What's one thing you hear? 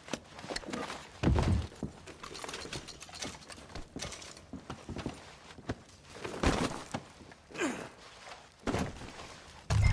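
A fire crackles softly in a fireplace.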